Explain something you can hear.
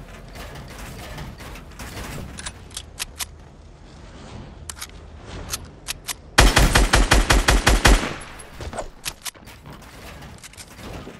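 Building pieces snap into place with short sharp clicks.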